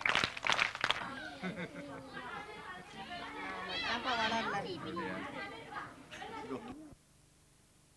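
A group of children chatter and call out excitedly.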